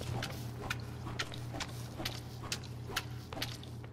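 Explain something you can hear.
A mop scrubs a wet floor with quick swishing strokes.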